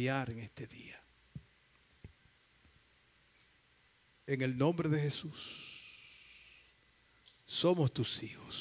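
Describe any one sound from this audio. An elderly man preaches with fervour through a microphone in an echoing hall.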